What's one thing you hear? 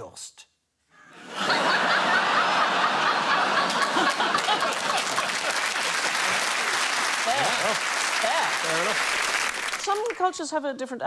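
A large audience laughs and applauds loudly.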